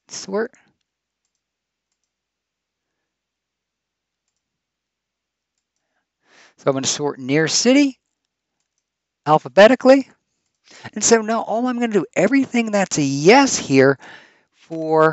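A man speaks calmly and explains through a microphone.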